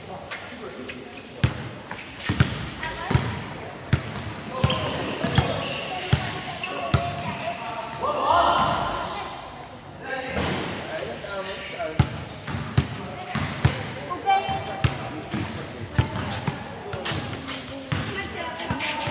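A ball thuds on a hard court and bounces off walls, echoing under a large roof.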